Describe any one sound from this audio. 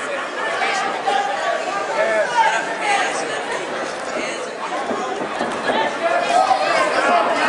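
A crowd shouts and cheers loudly in a large echoing hall.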